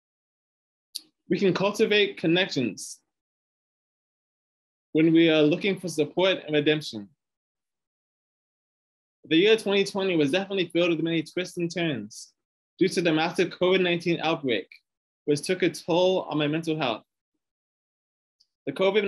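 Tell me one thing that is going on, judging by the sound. A young man speaks calmly in bursts over an online call, with pauses between them.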